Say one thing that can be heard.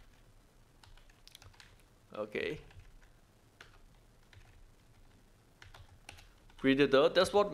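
Keys click softly on a keyboard.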